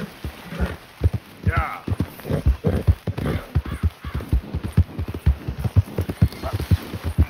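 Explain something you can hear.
A horse's hooves thud steadily on soft ground at a canter.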